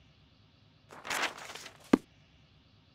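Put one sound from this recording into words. Pages of a heavy book rustle.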